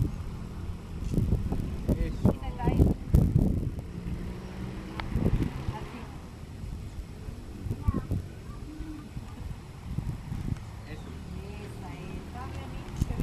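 A woman talks casually nearby outdoors.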